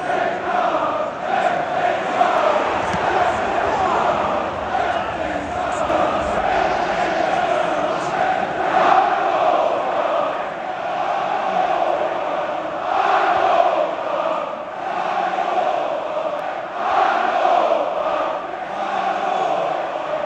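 A large stadium crowd chants in unison, echoing around the open stands.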